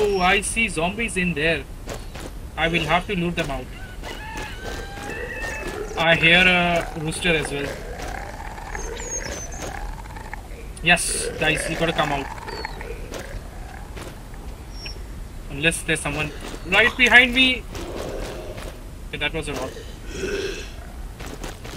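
A man talks with animation into a nearby microphone.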